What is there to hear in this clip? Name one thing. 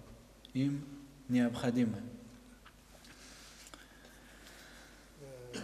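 A young man speaks calmly into a microphone in a slightly echoing room.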